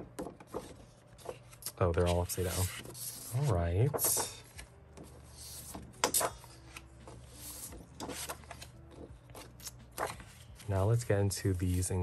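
Stiff paper sheets rustle and flap as they are handled.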